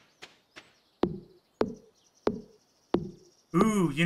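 An axe chops into a tree with dull thuds.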